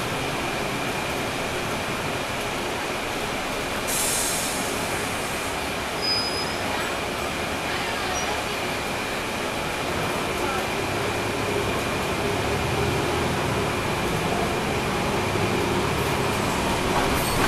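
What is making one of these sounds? A bus rolls along the street with a constant road noise.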